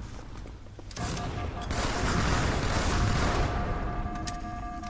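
Video game gunfire rattles in rapid bursts.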